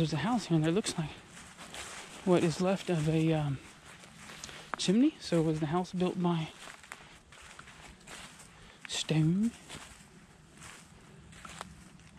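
Dry leaves crunch and rustle underfoot.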